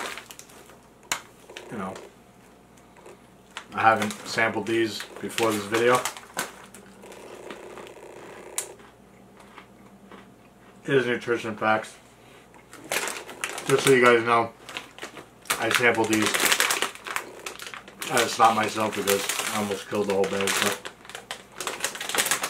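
A snack bag crinkles and rustles in a man's hands.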